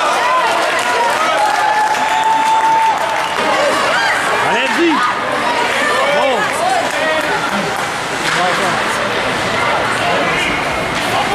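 Young players shout and call out in an echoing rink.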